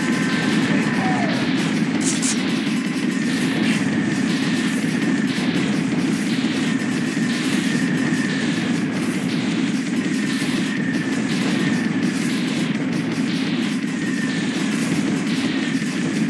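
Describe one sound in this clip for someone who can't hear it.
Explosions from a game boom now and then.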